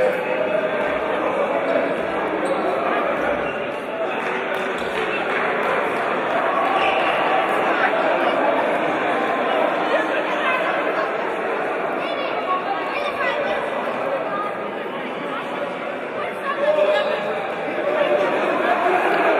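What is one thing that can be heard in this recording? A crowd of spectators chatters and cheers throughout a large echoing hall.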